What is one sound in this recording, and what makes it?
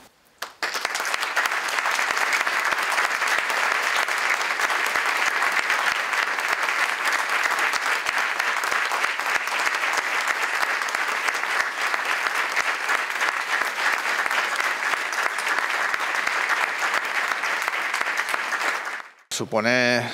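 A small group applauds steadily.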